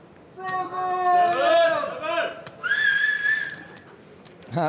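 Several young men exclaim excitedly nearby.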